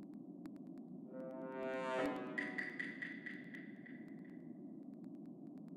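An electronic game jingle sweeps upward and rings out with a bright chime.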